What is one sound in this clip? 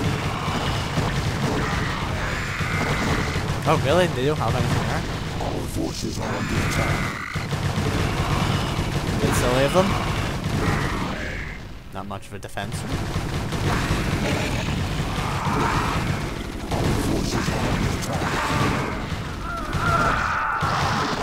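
Battle sound effects of creatures clashing and buildings exploding play.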